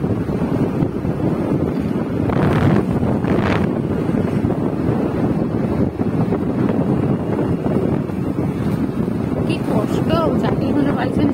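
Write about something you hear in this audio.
A scooter engine hums steadily while riding along.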